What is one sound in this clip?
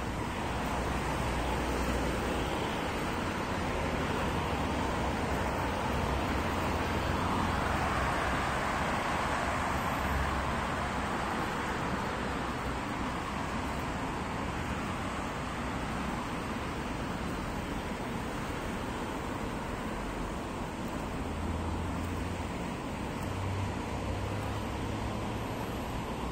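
Distant city traffic rumbles steadily outdoors.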